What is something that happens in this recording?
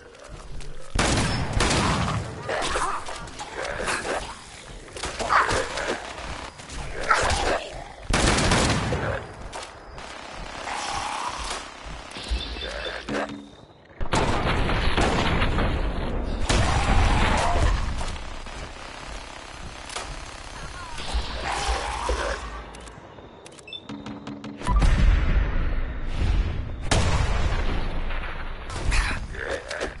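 Guns fire in loud bursts of shots.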